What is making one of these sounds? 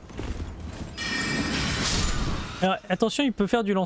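A large creature's wings beat with a loud whooshing rush.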